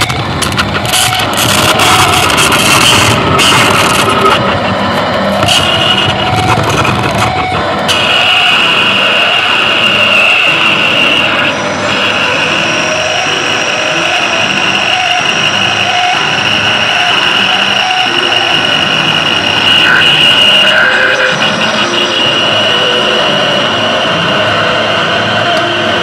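An electric guitar plays loudly through an amplifier outdoors.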